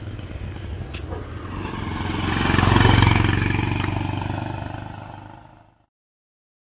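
A motorbike rides past on a road and fades away.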